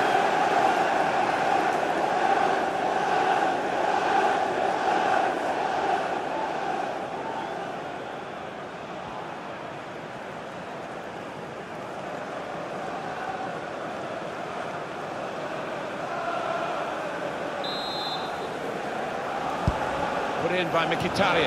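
A large stadium crowd roars and chants steadily, louder at first and then easing off.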